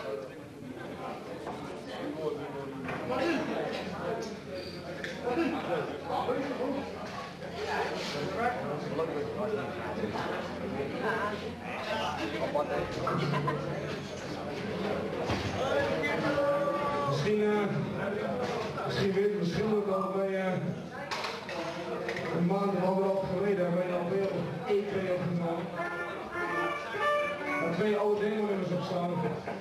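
Electric guitars play loud distorted riffs.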